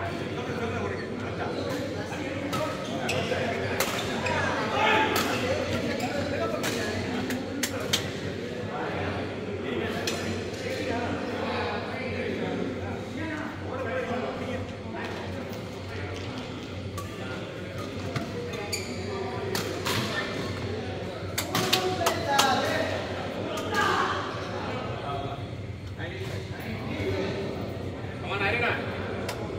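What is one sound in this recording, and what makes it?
Voices of men chatter and call out across a large echoing hall.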